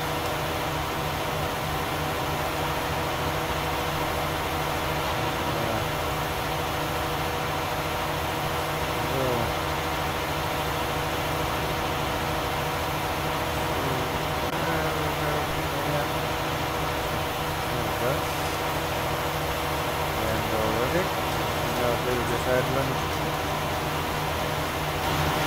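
A tractor engine drones steadily nearby.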